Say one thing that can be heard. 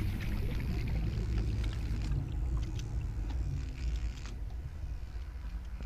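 Bubbles pop and fizz around an underwater vehicle.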